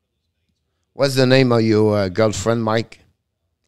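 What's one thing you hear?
An older man speaks briefly and with animation into a close microphone.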